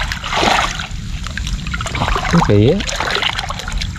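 Water splashes as a hand digs into wet mud.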